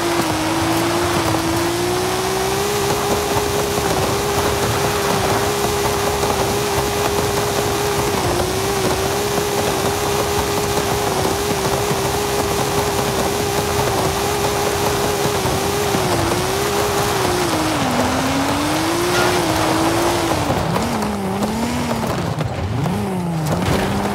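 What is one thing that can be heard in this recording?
A car engine roars steadily at high revs, then dips and rises as the car slows and speeds up again.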